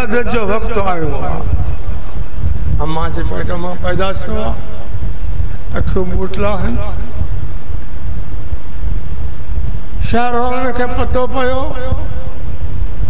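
An elderly man speaks slowly and in a drawn-out, chanting way through a microphone.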